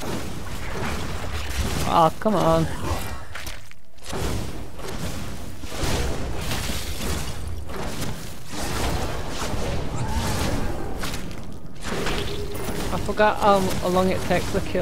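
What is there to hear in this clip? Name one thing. Magic blasts and impacts crackle and boom in a fight.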